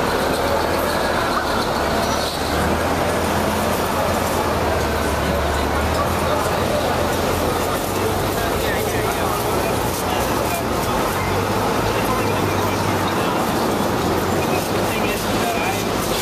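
People chatter on a busy street outdoors.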